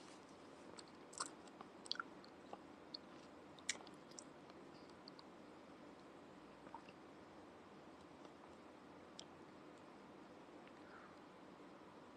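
A woman sips a drink through a straw.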